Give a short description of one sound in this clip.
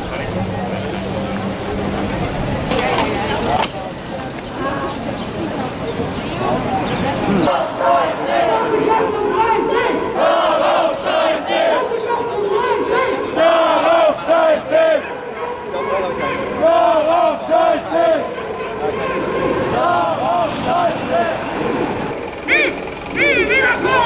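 A crowd of men and women chatter around outdoors.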